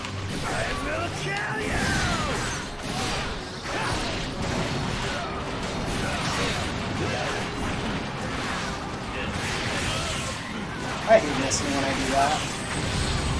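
Swords clash and slash rapidly in a chaotic battle.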